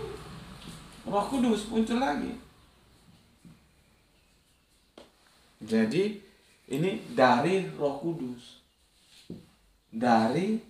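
A man speaks calmly nearby, in short phrases with pauses.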